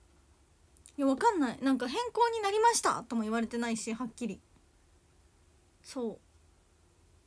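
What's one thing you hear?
A young woman speaks close to a microphone in a lively voice.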